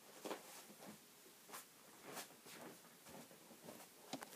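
Footsteps thud softly across the floor.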